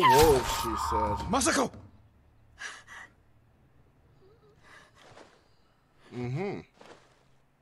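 A man cries out and groans in pain close by.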